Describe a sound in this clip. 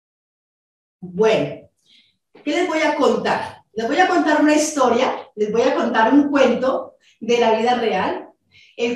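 A woman speaks steadily through an online call.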